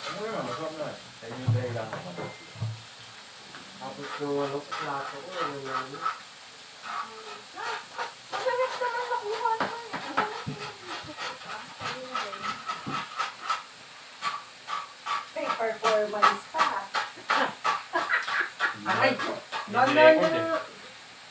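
Several young women and men chat and laugh close by.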